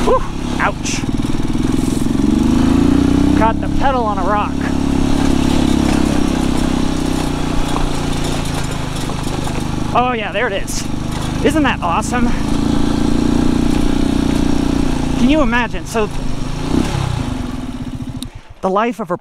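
A motorcycle engine hums steadily close by, then cuts out.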